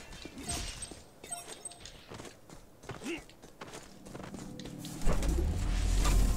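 Heavy metal footsteps thud on the ground.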